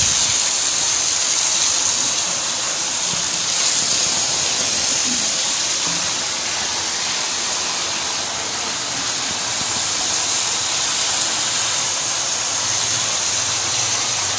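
A strong jet of water from a hose sprays and splashes hard onto a hard floor.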